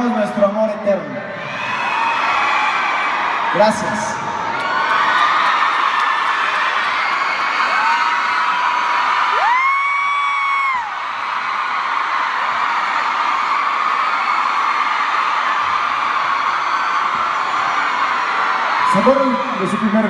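An audience cheers and applauds.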